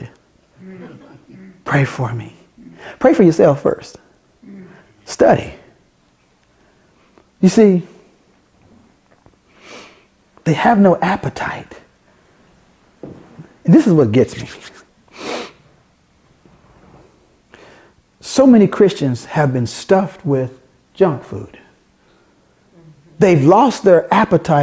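A middle-aged man preaches with animation into a close microphone, in bursts with pauses.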